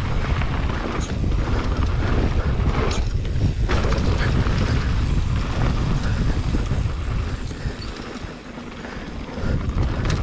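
Wind rumbles loudly against the rider.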